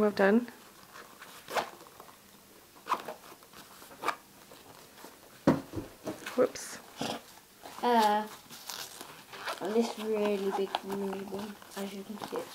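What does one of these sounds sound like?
A young boy speaks close by in a high voice.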